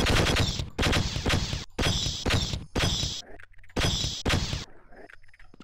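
An alien weapon fires in loud, rapid bursts.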